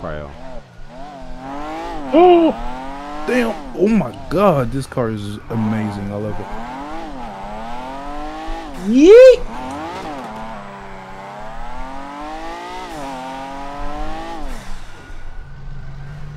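Tyres screech as a car drifts round corners.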